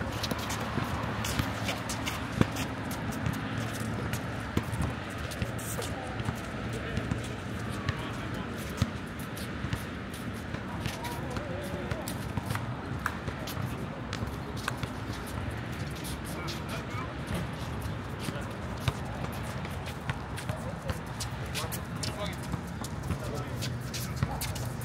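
Young men call out to each other across an outdoor court.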